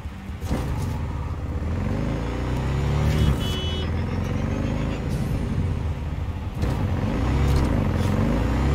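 A motorcycle engine roars and revs steadily.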